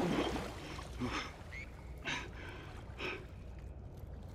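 Water sloshes and splashes as someone wades through it.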